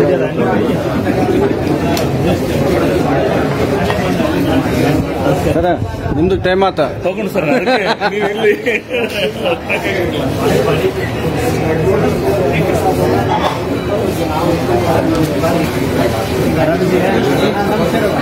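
A crowd of men talk over each other nearby.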